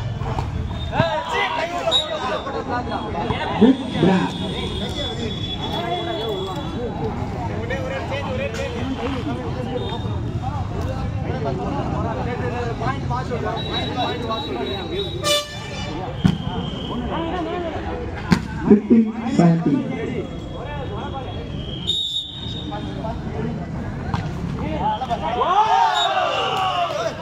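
A crowd of young men chatters and calls out outdoors.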